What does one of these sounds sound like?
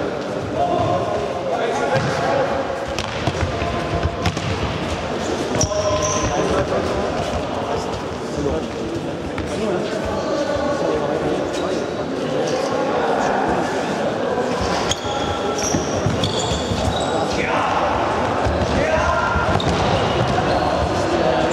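A ball thuds against a hard floor and is kicked, echoing in a large hall.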